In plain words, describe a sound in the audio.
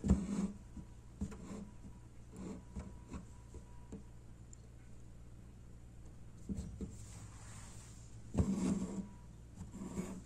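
Thread rasps softly as it is pulled through taut cloth.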